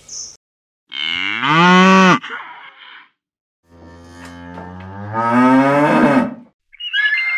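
A cow moos loudly nearby.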